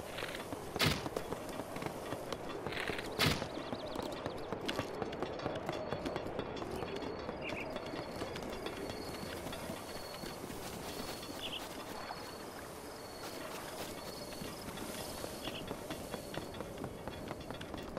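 Footsteps thud quickly on a wooden bridge.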